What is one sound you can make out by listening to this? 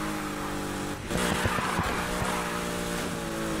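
Tyres screech and hiss as a car slides through a turn.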